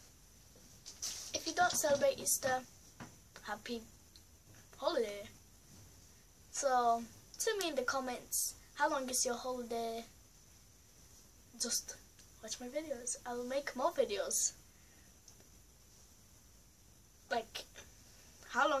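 A young girl talks with animation close to the microphone, in short bursts with pauses.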